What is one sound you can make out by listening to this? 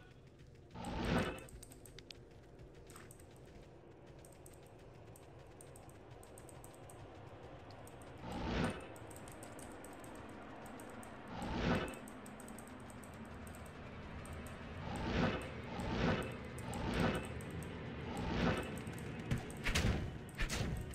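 Magic spells whoosh in short, loud bursts.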